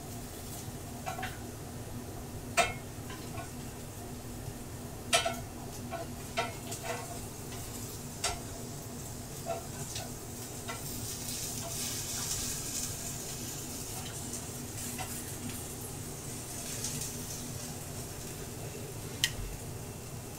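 Tongs click and scrape against a metal pan.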